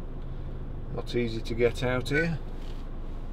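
A middle-aged man speaks briefly and calmly, close by.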